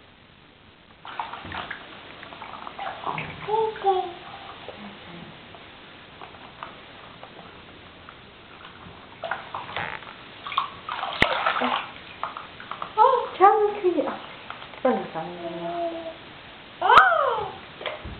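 Water splashes in a bathtub.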